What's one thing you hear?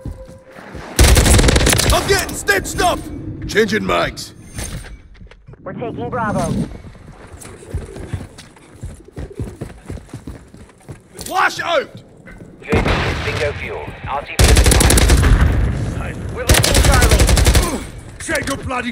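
Rapid bursts of gunfire rattle loudly.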